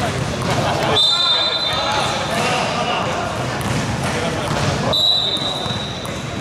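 A referee blows a whistle in a large echoing hall.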